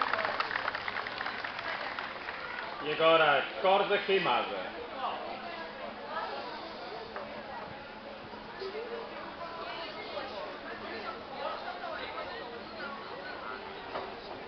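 A group of men and women sing a folk song together.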